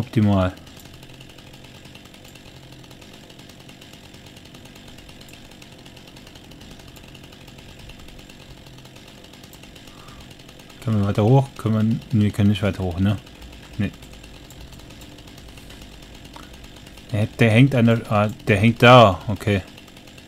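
A chainsaw engine idles quietly and steadily.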